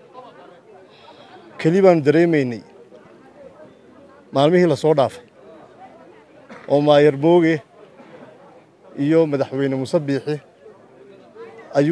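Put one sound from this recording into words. A man speaks firmly into microphones close by, in short loud phrases with pauses.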